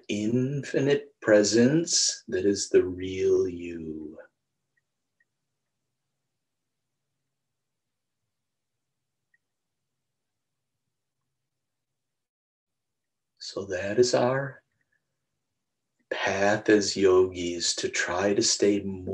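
A middle-aged man speaks calmly and close to a microphone, with long pauses.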